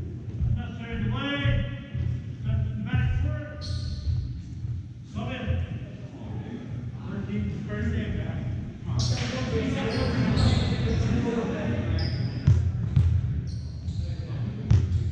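Young men shout to each other in a large echoing gym.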